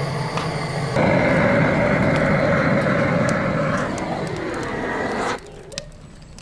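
Flames from a gas torch roar loudly.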